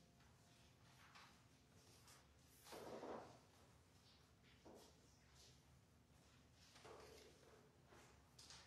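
A man speaks softly at a distance in an echoing room.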